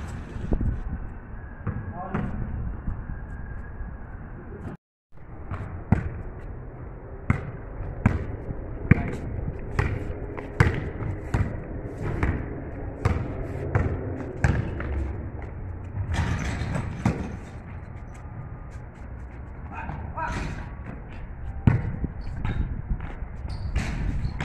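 A basketball bounces on hard pavement with a slight echo.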